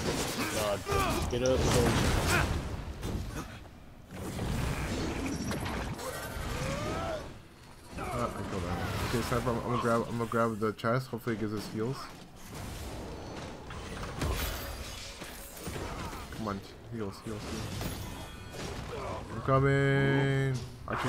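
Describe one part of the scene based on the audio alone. Swords clash and slash in a fight.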